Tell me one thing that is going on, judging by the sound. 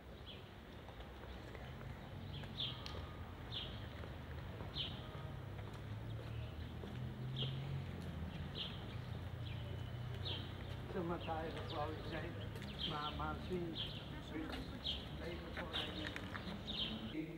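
Footsteps click on pavement at a steady walking pace.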